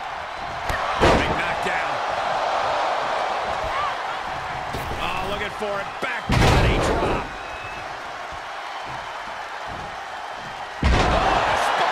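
Heavy bodies slam onto a wrestling ring mat.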